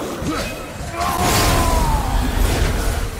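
A magic blast bursts loudly.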